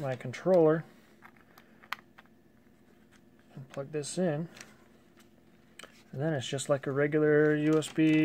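A plastic plug clicks as it is pushed into a socket.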